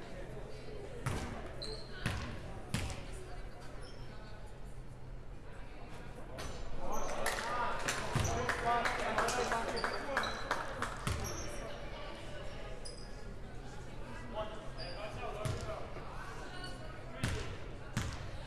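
A basketball bounces on a hard court, echoing in a large gym.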